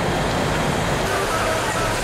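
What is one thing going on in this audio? Water from a fire hose sprays hard.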